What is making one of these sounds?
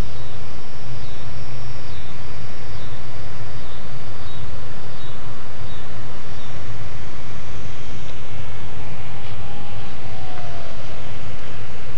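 A small model airplane's motor buzzes overhead as it flies past.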